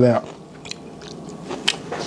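A young man chews food with wet smacking sounds.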